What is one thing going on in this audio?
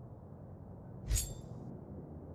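A menu click sounds once.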